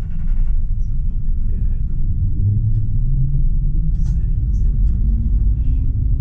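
A tram's motor whines as it pulls away.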